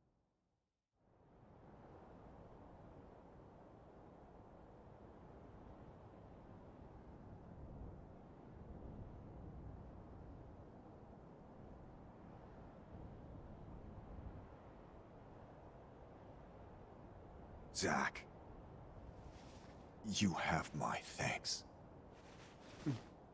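Flames rumble and crackle steadily.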